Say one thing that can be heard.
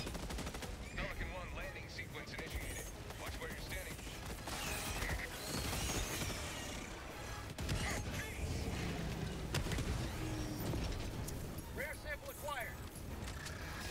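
Large insect creatures screech.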